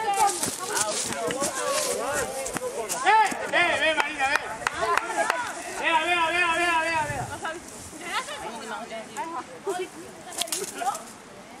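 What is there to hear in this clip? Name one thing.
Young people shout and call out to each other outdoors.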